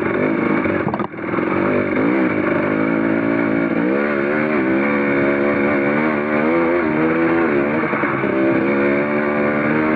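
Tyres crunch over loose rock.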